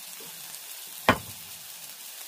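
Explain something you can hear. A metal bottle thumps down onto a table.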